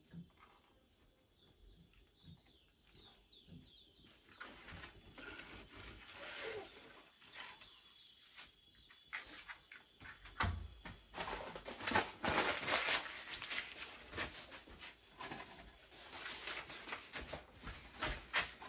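Sticks clatter as a man handles firewood.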